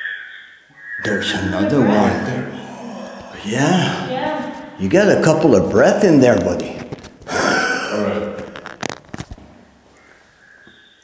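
A bearded man talks with animation close by.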